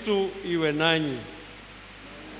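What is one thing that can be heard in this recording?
A man chants a short phrase into a microphone, echoing through a loudspeaker.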